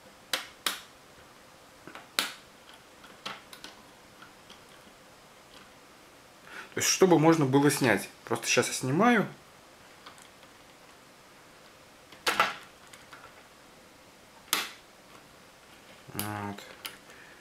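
Metal parts click and clink as fingers tighten a small clamp.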